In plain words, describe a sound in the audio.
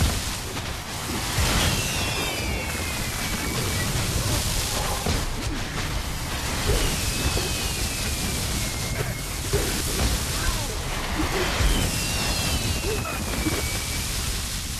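Magic spells crackle and burst in a busy fight.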